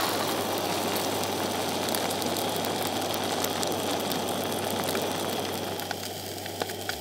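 Fish sizzles in a hot pan.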